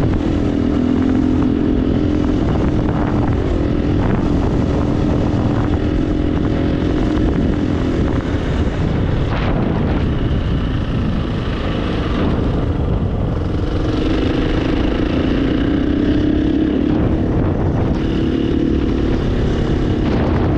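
Tyres crunch and rumble over loose gravel.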